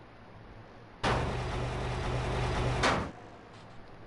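A garage door rolls open with a loud rattling rumble.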